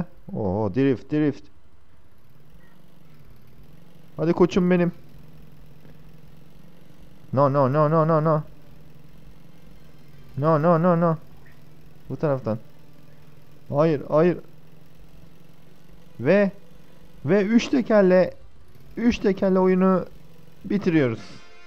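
A quad bike engine drones steadily.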